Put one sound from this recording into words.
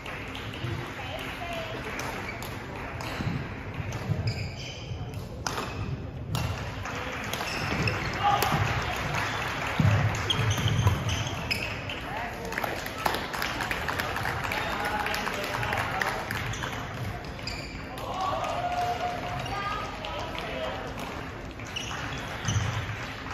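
Voices of young people chatter in a large echoing hall.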